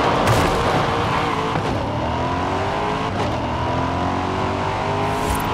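A sports car engine roars as it accelerates, its pitch climbing and dropping with each gear change.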